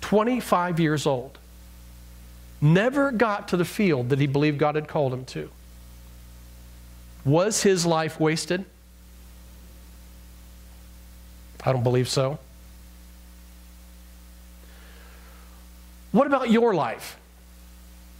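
A middle-aged man speaks with animation through a microphone, pausing between phrases.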